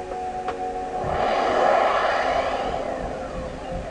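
A bright shimmering magic sound swells and then fades away.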